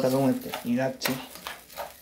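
A metal spoon stirs rice in a pan.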